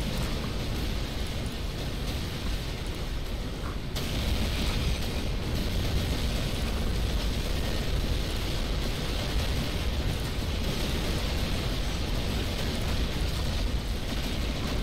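Explosions rumble and boom.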